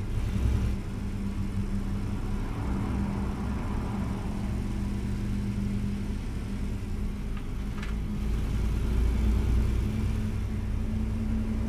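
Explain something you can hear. A truck engine hums steadily at a low pitch.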